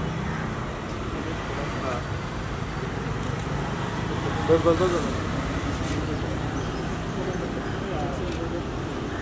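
Several men talk loudly close by outdoors.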